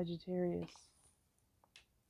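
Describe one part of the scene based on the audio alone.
Playing cards rustle and slide on a wooden table.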